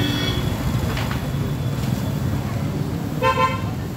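A car drives past closely.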